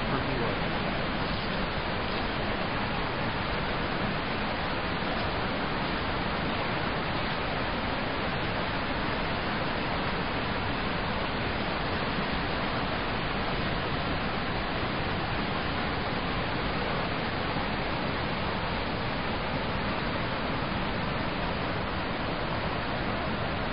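A river rushes and splashes over rocks, loud and steady.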